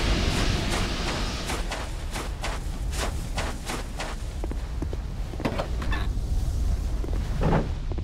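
Armoured footsteps clank steadily along.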